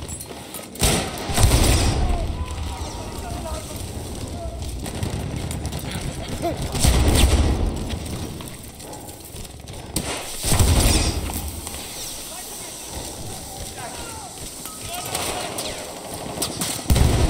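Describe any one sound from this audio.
Gunfire and explosions boom in bursts.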